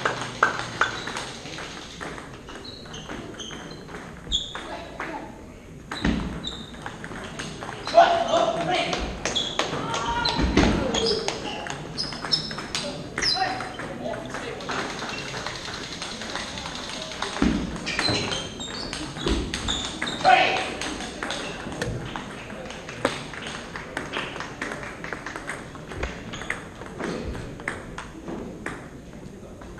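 Table tennis balls click on paddles and the table in a large echoing hall.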